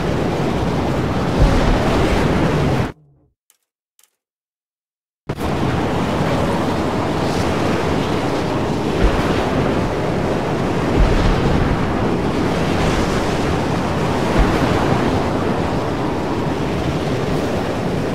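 A car engine roars as the car speeds over rough ground.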